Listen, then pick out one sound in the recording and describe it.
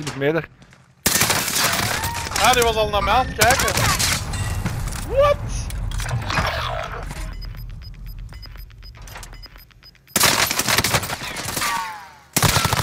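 Gunfire bursts out in rapid, loud shots.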